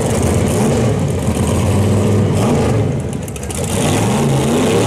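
A loud race car engine idles and revs roughly.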